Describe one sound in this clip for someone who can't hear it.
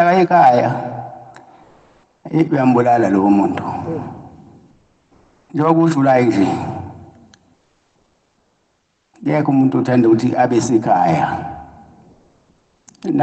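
A man preaches loudly with animation in bursts, with pauses between.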